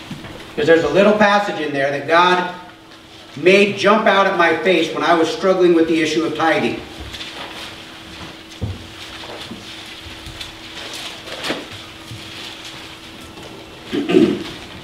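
A middle-aged man speaks calmly into a microphone in a room with some echo.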